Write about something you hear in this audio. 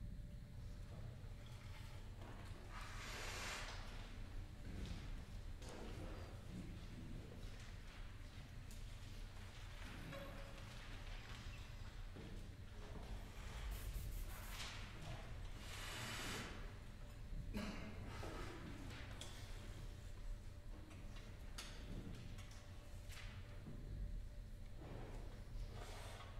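A wind band plays music in a large echoing hall.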